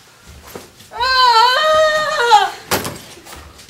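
A teenage girl laughs loudly.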